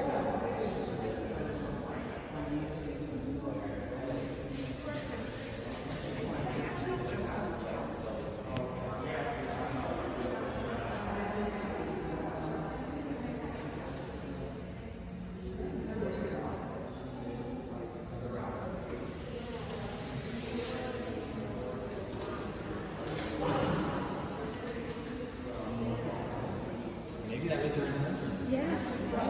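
Several adults murmur and chat quietly in a large echoing hall.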